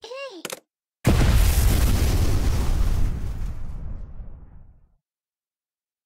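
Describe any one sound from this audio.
A loud explosion booms and slowly rumbles away.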